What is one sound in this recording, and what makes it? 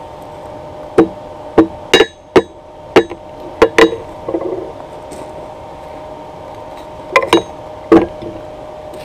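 A wooden mallet strikes metal with loud, sharp clanks.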